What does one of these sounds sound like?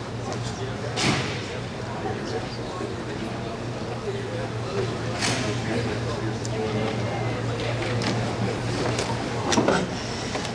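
A body thuds onto a carpeted floor.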